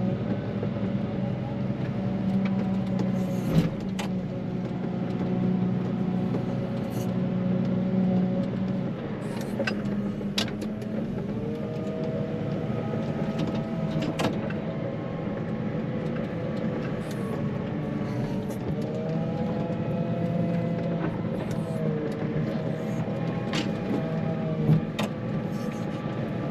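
A heavy diesel engine rumbles steadily up close, its pitch rising and falling with the throttle.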